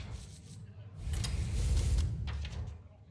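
A magical shimmering sparkle rings out in a game.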